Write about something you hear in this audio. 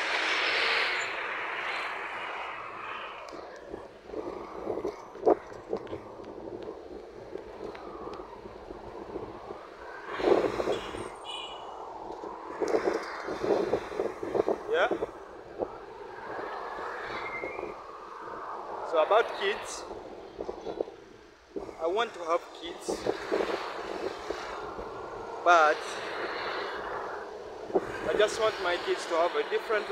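A young man talks calmly close to the microphone, outdoors.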